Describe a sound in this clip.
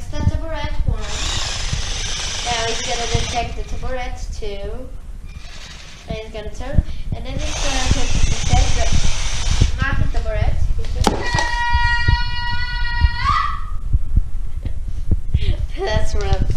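A toy robot's motors whir as it rolls across the floor.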